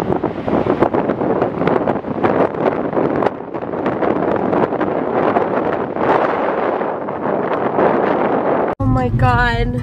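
Waves crash and roar onto a beach in gusty wind.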